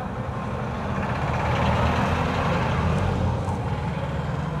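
A minibus engine grows louder as it passes close by.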